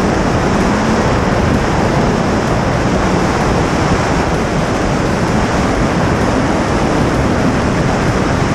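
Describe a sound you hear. Tyres hum steadily on a paved road.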